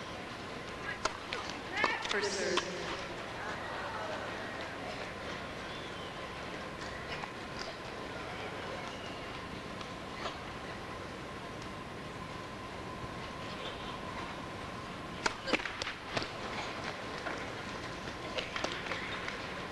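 Rackets strike a tennis ball with sharp pops, echoing in a large hall.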